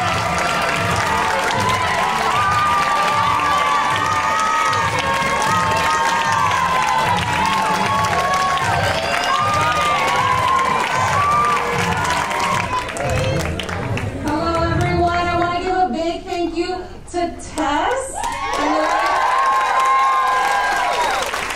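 A crowd of young people cheers and whoops loudly in a large hall.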